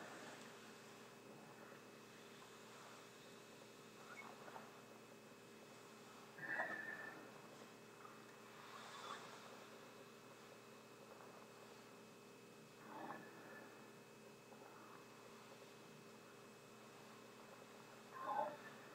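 A man breathes through a rubberized hood that crinkles against his face.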